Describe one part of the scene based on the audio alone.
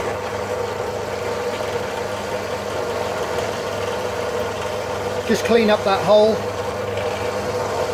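A small drill press motor whirs steadily.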